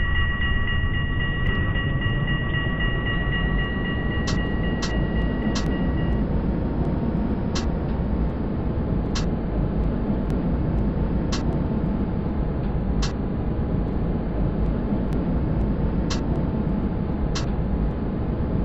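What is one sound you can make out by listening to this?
A tram's electric motor whines, rising in pitch as the tram speeds up.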